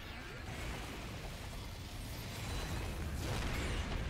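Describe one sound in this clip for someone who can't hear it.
An energy beam blasts with a crackling roar.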